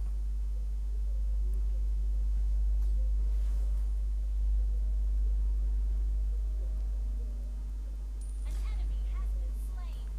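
A man talks quietly close to a microphone.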